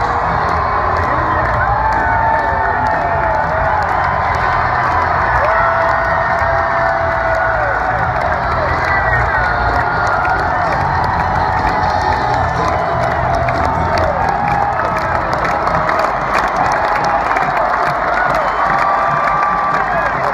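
A marching band plays brass music across a large open stadium.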